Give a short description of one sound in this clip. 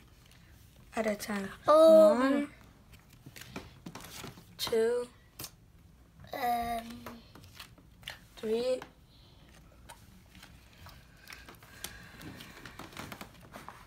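Trading cards shuffle and slap onto a wooden floor.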